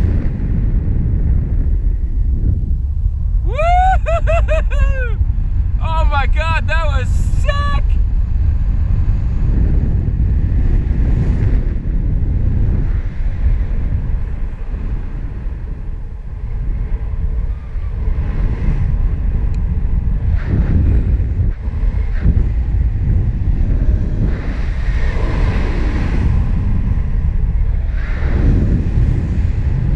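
Wind roars steadily past the microphone outdoors.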